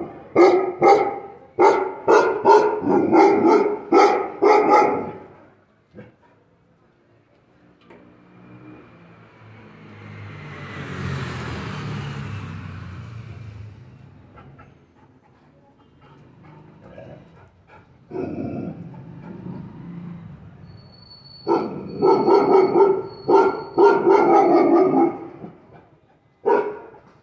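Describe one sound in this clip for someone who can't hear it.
A large dog barks loudly and repeatedly.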